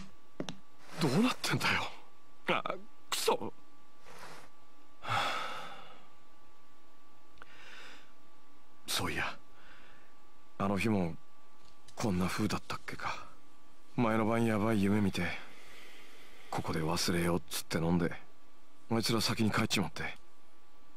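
A young man speaks quietly and thoughtfully.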